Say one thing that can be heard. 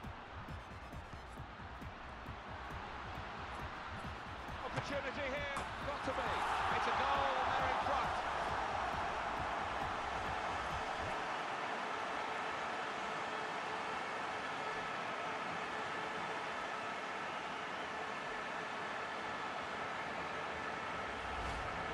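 A large stadium crowd roars and cheers loudly, swelling suddenly and then holding steady.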